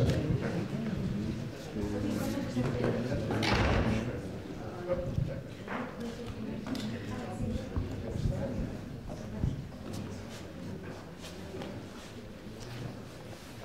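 Two men talk quietly near a microphone in a large echoing hall.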